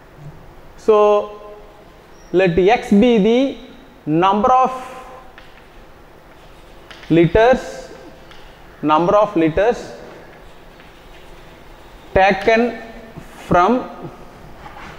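A young man speaks in short phrases, as if explaining to a class.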